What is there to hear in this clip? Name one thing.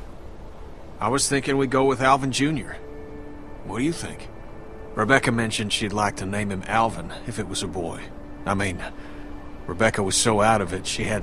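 A gruff man speaks calmly and warmly.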